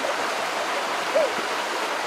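A shallow stream flows and babbles nearby.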